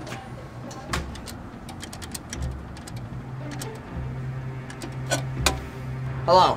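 Coins clink into a pay phone.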